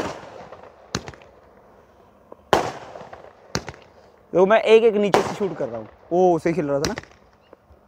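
Firework rockets whistle as they shoot upward.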